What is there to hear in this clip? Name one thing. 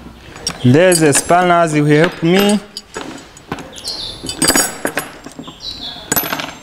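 Metal hand tools clink and knock on a wooden bench.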